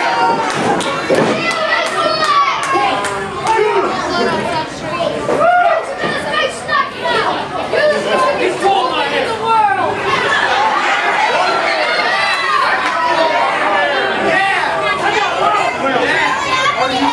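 A crowd of spectators chatters and cheers in an echoing hall.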